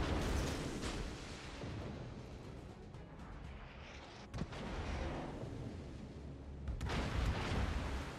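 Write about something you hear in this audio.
Shells splash into water nearby.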